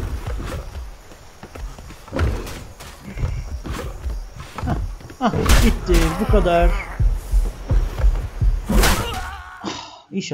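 Fists thud in quick, repeated blows.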